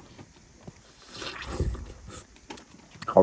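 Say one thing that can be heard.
A man slurps and sucks juice from an orange slice.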